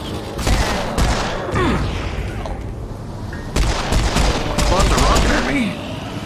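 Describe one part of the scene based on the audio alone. A pistol fires loud shots one after another.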